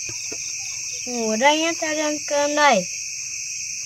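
A young boy speaks softly, close by.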